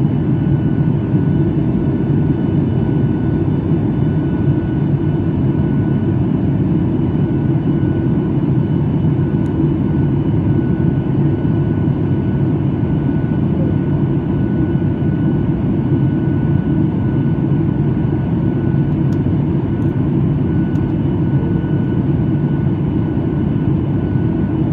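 A jet engine roars steadily inside an airliner cabin in flight.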